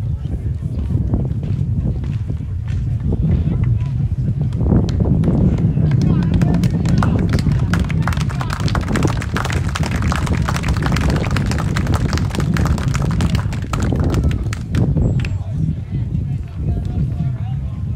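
Wind gusts steadily across an open field, rumbling against the microphone.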